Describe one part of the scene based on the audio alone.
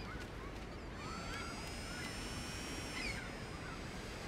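A small drone whirs steadily overhead.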